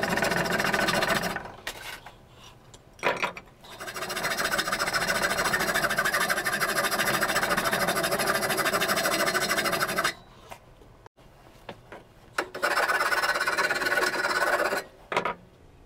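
A metal file rasps rhythmically back and forth against a metal pipe.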